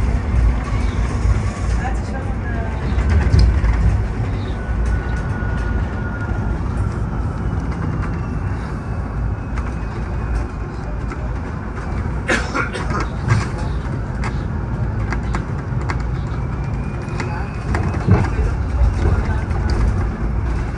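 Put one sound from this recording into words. A bus engine rumbles low and steady from inside the cabin.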